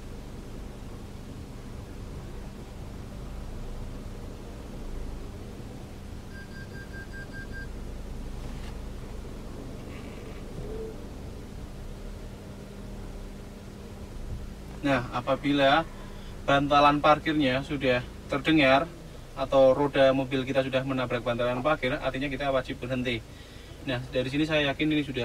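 A car engine idles with a low steady hum.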